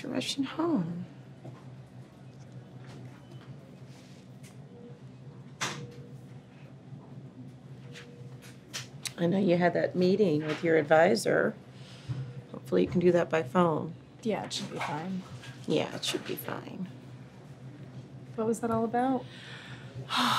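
A young woman answers softly close by.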